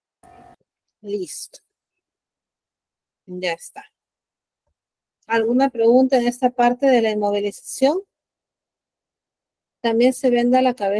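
A young woman speaks calmly through an online call, in short bursts with pauses.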